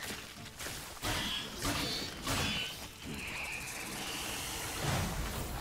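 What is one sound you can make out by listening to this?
Sword blows clash and thud in a fight.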